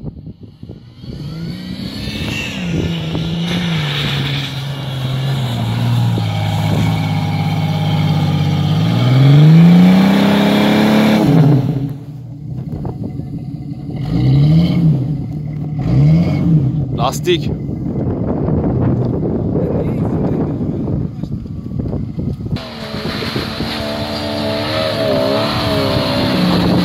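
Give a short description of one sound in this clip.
An off-road vehicle's engine revs hard as it climbs.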